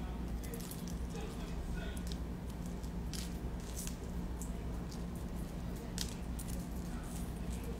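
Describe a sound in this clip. Metal necklace chains clink together.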